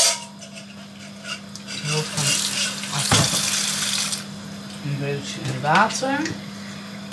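Dishes clink and clatter in a metal sink.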